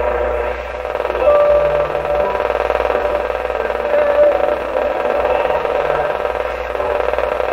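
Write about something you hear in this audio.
An old valve radio plays hissing static and a faint muffled broadcast through its loudspeaker.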